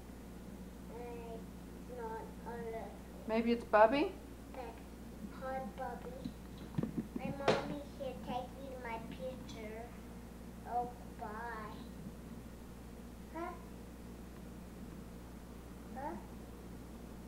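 A toddler babbles and chatters playfully into a toy phone, close by.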